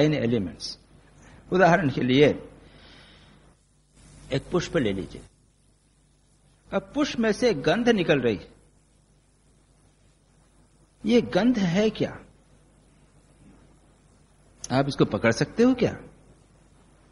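An elderly man speaks calmly in short phrases with pauses, heard through a microphone.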